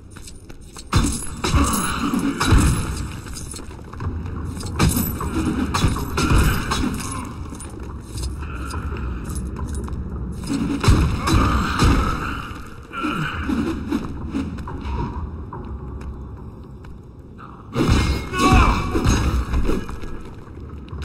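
Small objects smash and pieces clatter.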